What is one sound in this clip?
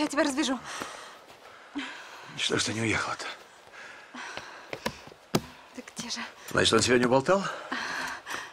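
A man groans and gasps in pain close by.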